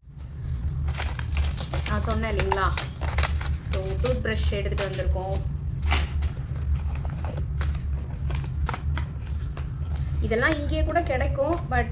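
Small cardboard boxes rustle and knock together as hands handle them.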